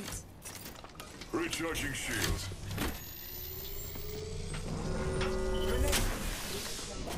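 A shield battery charges up with a rising whir.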